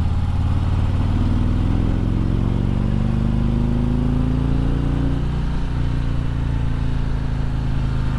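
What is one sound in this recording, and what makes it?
A motorcycle engine hums steadily close by, its pitch slowly rising and then dropping as it shifts gear.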